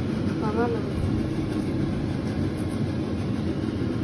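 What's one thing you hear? A hand presses soft food onto a flatbread with faint squishing.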